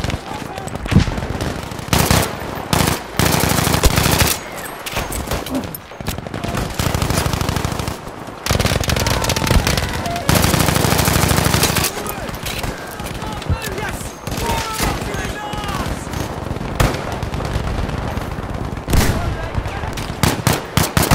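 A rifle fires sharp, loud shots now and then.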